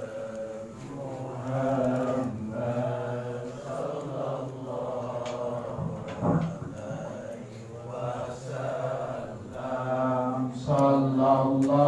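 A group of men chant loudly together in unison, in a rhythmic drone.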